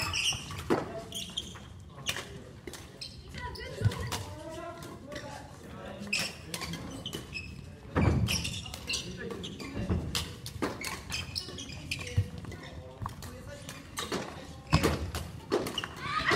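Badminton rackets strike a shuttlecock back and forth in a large echoing hall.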